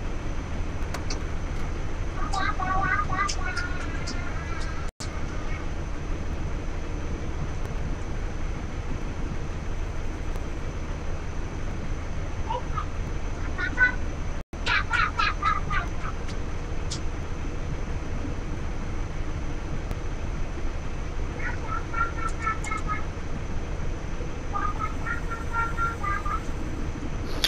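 A vehicle engine idles with a low, steady hum.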